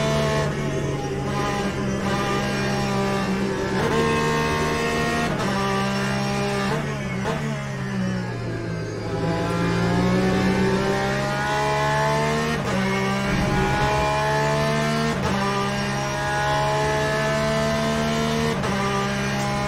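A race car engine roars steadily and rises in pitch through the gears.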